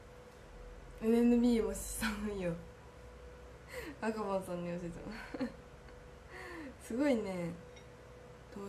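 A young woman talks cheerfully and close up, as if into a microphone.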